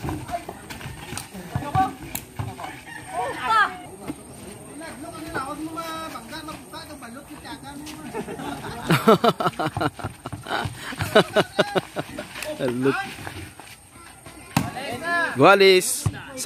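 A basketball thuds against a wooden backboard.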